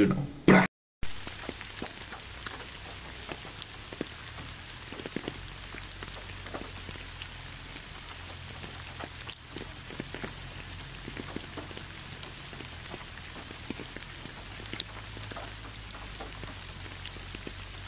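Raindrops patter softly on a leaf-covered road.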